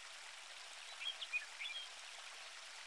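A fishing float plops into the water.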